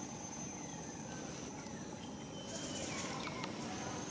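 Dry leaves rustle as monkeys walk over the ground.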